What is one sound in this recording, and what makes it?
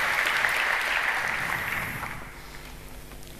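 An audience applauds in a large hall, and the applause fades away.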